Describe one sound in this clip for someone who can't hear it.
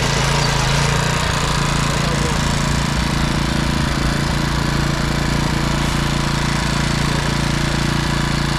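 Tiller blades churn through stony soil.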